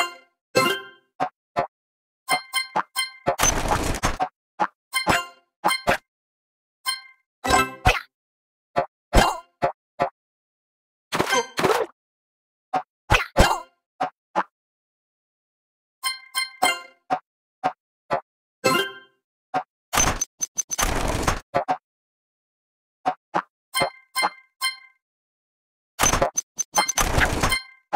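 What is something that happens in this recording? Bright chiming jingles ring out in quick bursts.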